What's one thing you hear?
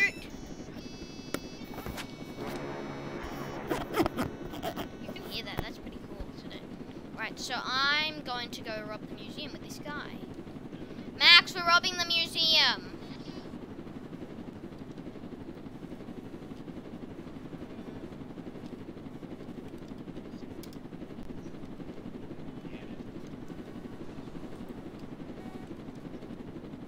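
A helicopter's rotor hums steadily.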